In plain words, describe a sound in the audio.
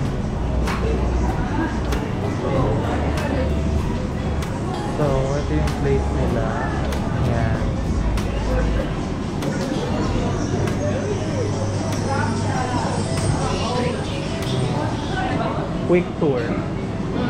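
Dishes and cutlery clink now and then.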